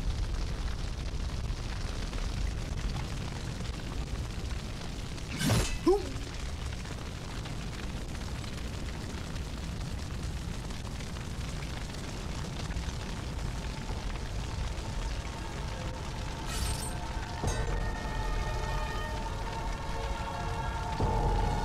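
Flames roar and crackle steadily.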